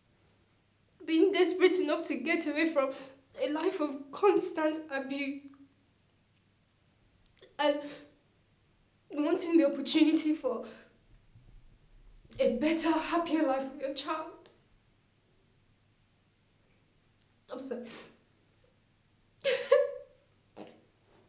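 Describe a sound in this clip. A young woman speaks tearfully, close by.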